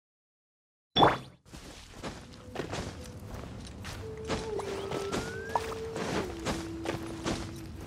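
A game character's footsteps scrape while climbing a rock wall.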